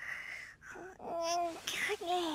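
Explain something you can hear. A kitten mews softly.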